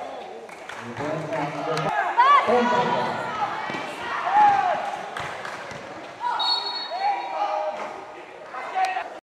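A crowd cheers and shouts in the background.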